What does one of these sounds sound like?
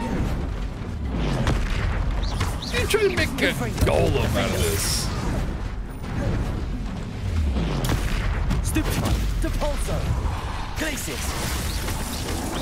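A heavy stone creature crashes and rumbles.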